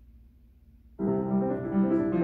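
A piano plays loudly.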